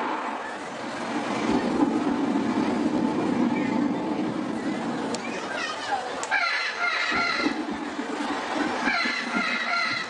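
A large crowd cheers and chatters in an open-air arena.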